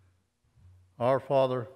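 A man speaks into a microphone in a large echoing room.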